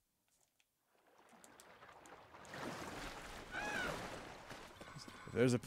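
Water splashes and laps as a swimmer paddles.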